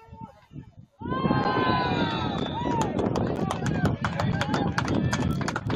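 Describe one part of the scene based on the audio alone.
A crowd of spectators cheers and yells loudly.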